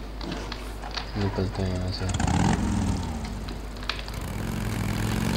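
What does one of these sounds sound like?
A motorcycle engine starts and idles.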